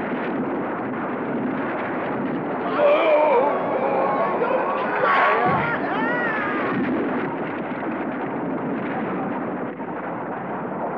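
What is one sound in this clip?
A wooden bridge creaks, cracks and crashes down with a heavy rumble.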